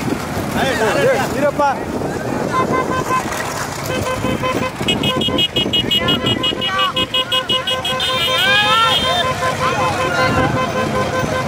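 Men shout and cheer excitedly outdoors.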